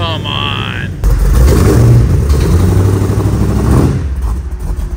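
A large vehicle's engine roars loudly as it drives past.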